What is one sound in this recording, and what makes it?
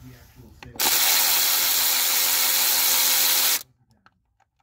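A cordless ratchet whirs steadily, loud and close.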